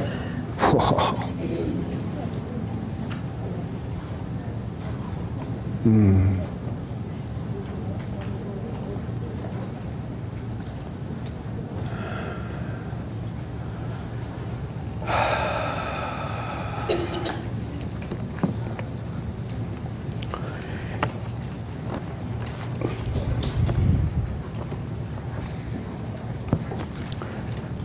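A man speaks through a microphone and loudspeakers in a large echoing room, slowly with pauses.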